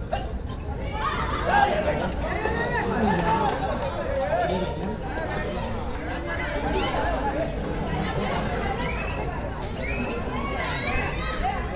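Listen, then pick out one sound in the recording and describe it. Spectators cheer loudly.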